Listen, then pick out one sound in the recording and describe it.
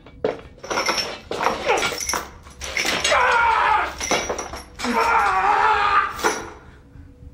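A man screams in pain close by.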